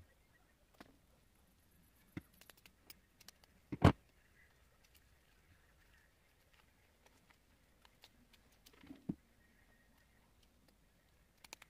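Small objects click and tap on a table.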